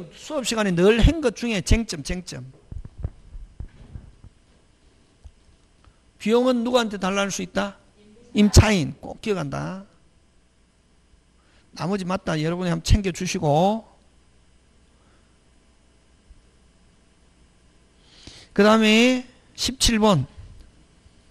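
A man lectures through a microphone, speaking with animation in short bursts.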